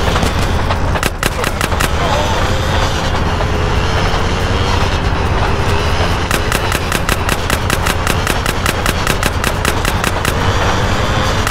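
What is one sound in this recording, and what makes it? Gunshots crack in rapid bursts.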